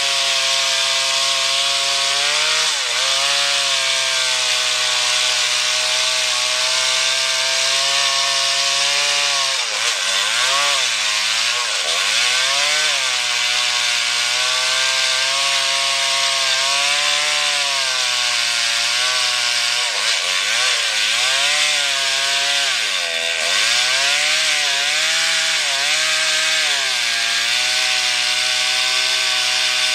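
A chainsaw engine roars loudly while cutting through wood, its pitch dipping and rising as it bogs down.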